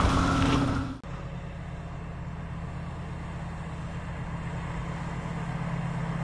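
An engine hums steadily as a vehicle drives through snow.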